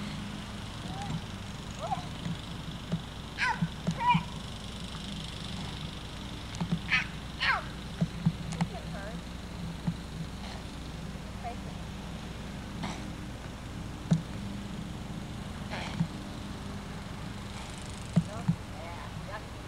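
A toddler girl babbles and squeals outdoors.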